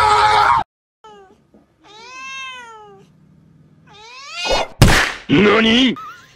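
A cat yowls and growls in drawn-out, rising and falling cries.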